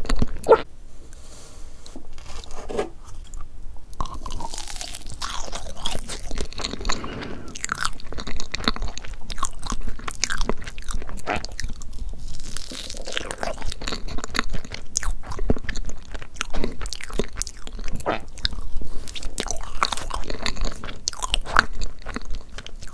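A fork cuts softly into a layered cake.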